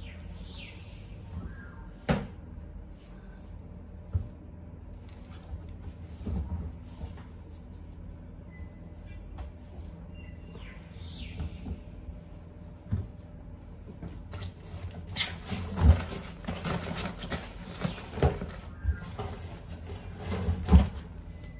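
Laundry rustles and thumps softly into a washing machine drum.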